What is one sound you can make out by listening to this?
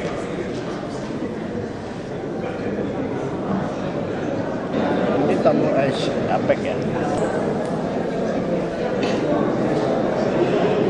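A crowd of men and women murmurs and chatters in a large echoing room.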